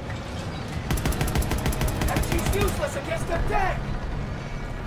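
A machine gun fires rapid bursts.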